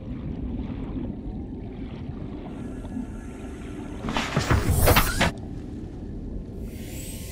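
A low underwater rumble drones steadily.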